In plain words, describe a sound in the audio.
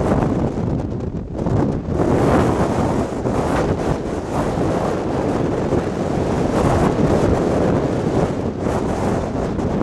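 Water churns and rushes loudly below.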